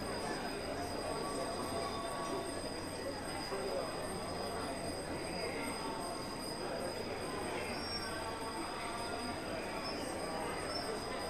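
A crowd of people murmurs and talks close by.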